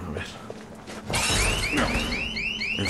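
Glass shatters loudly and shards clatter down.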